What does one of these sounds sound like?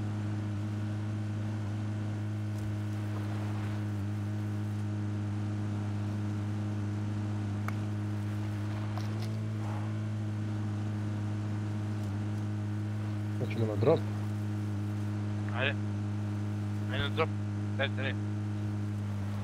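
A vehicle engine drones steadily while driving.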